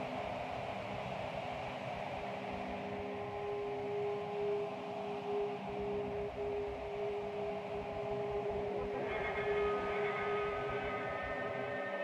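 Ambient electronic synthesizer music plays in sustained drones.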